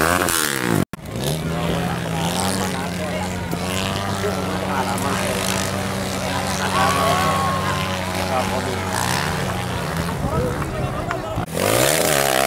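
A motorbike engine drones steadily nearby.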